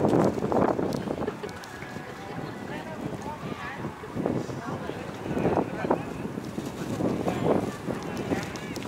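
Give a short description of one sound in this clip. Wind gusts blow hard outdoors, buffeting in bursts.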